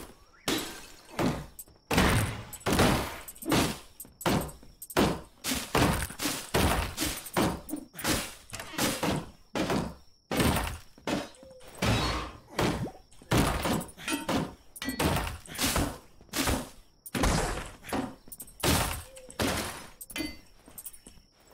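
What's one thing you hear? Blows thud repeatedly as tools strike wood and stone.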